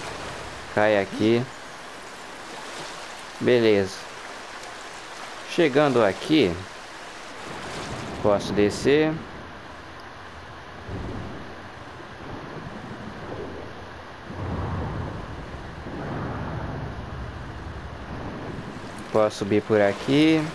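Water splashes as someone swims through it.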